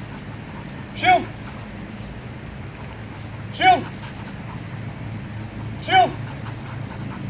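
Dogs bark outdoors.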